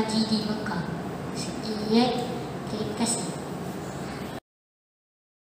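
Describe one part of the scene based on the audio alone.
A boy speaks clearly into a microphone, reciting.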